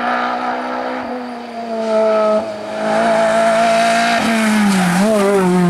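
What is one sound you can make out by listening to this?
A rally car engine revs hard and roars closer.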